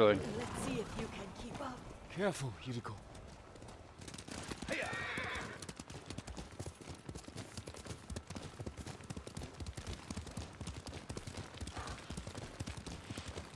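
Horses gallop with quick, steady hoofbeats on a dirt path.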